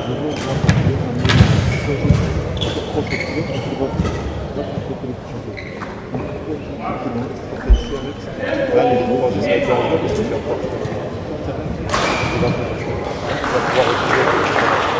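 Rackets strike a shuttlecock in a large echoing hall.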